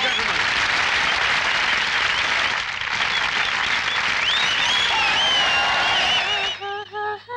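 A large crowd claps.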